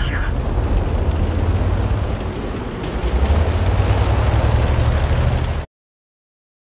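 A tank engine rumbles and growls steadily.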